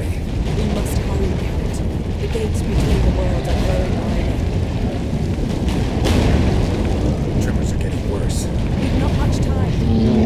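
Magical blasts whoosh and burst.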